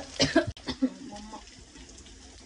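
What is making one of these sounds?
A young woman speaks briefly up close.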